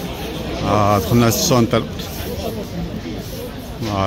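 A crowd of people chatters and walks through a busy street outdoors.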